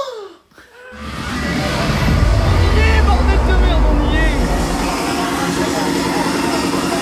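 A crowd roars in a large, loud hall.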